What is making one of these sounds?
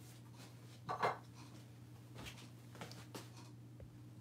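A wooden block knocks against a tabletop.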